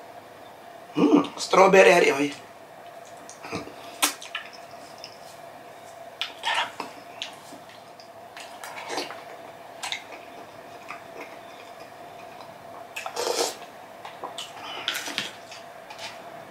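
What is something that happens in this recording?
A man slurps food from a spoon.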